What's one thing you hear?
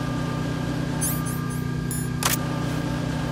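Menu beeps chirp briefly.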